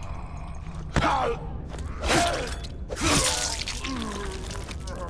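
A knife stabs into flesh with wet, heavy thuds.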